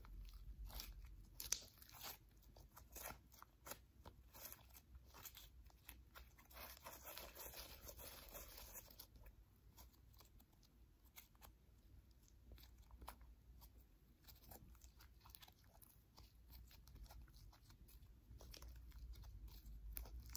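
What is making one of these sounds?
Soft slime squishes, squelches and pops close by between fingers.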